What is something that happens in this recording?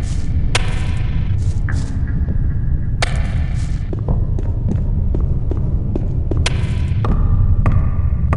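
A low rumbling drone fills an echoing cave.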